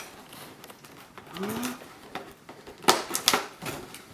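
Tape peels off a cardboard box with a crackle.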